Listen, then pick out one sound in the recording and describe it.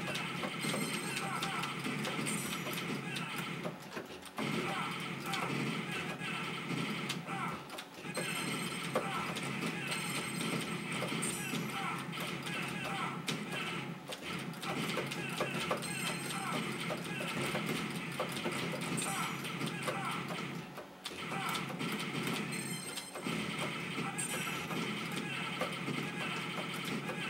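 An arcade game plays rapid gunfire and explosion effects.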